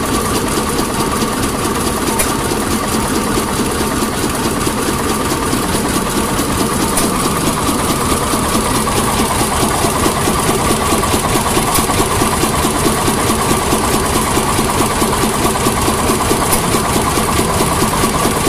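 An old stationary engine runs with a steady, rapid chugging and clatter.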